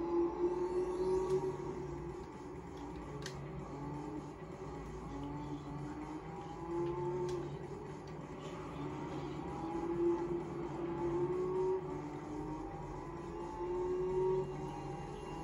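A racing car engine whines and revs up and down through gear changes.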